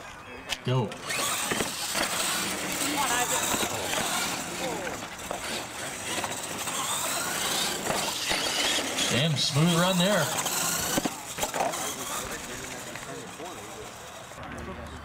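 Small electric motors whine as toy trucks race.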